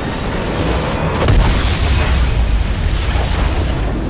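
A tower crumbles and explodes with a loud blast.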